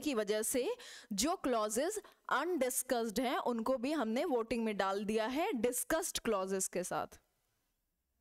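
A young woman speaks clearly and with animation close to a microphone.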